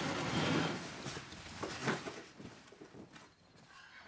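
Cardboard boxes scrape and thump on a wooden floor.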